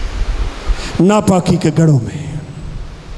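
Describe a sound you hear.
An elderly man speaks into a microphone, heard through a loudspeaker.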